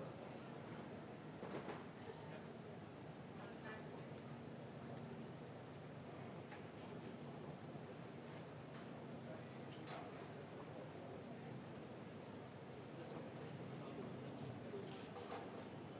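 A large outdoor crowd murmurs steadily in an open square.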